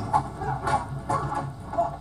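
A man shouts as he fights, heard through a television speaker.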